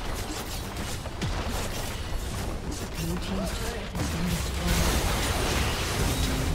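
Game spells and attacks crackle and burst in a busy battle.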